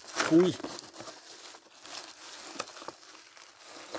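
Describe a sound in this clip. Stiff plastic crinkles as it is unrolled.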